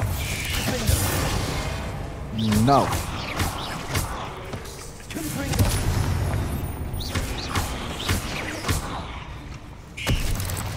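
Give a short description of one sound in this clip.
Magic spells zap and crackle in quick bursts.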